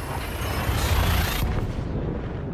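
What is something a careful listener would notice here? A spaceship's jump drive roars loudly, then cuts off suddenly.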